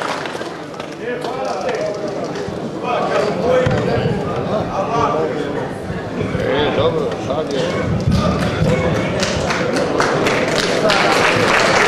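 A man speaks into a microphone, heard through loudspeakers in a large echoing hall.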